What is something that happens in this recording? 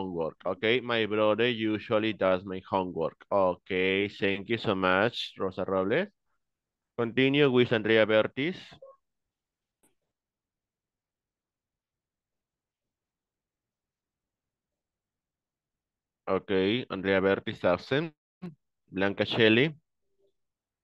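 A man speaks calmly through an online call, with long pauses.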